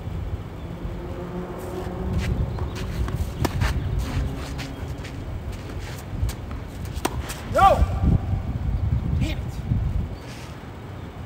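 Sneakers squeak and shuffle on a hard court.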